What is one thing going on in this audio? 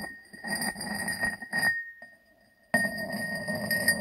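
A ceramic lid clinks onto a jar.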